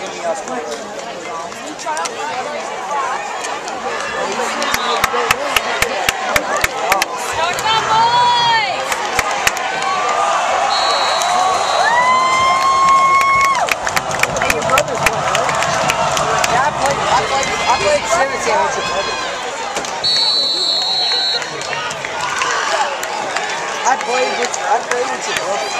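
A large crowd cheers and shouts outdoors, swelling as the play runs.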